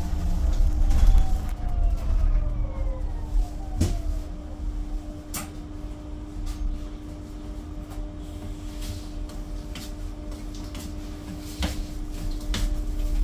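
A bus engine hums low and steady from inside the bus.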